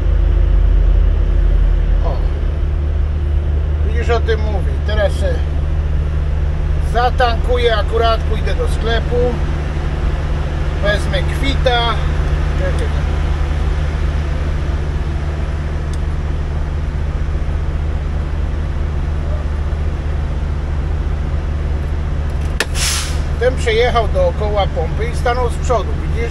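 A truck engine hums low and steady from inside the cab.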